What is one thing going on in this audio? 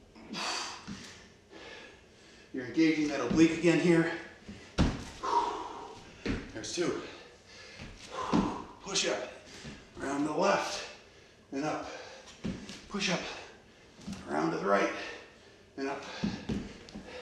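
A middle-aged man talks steadily and with animation, close by in a room with some echo.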